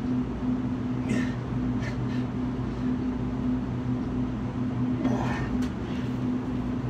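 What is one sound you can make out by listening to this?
A man grunts and breathes hard with effort close by.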